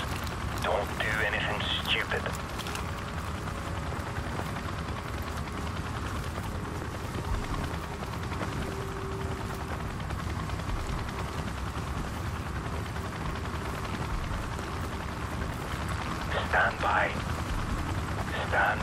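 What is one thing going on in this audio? Dry grass rustles as someone crawls slowly through it.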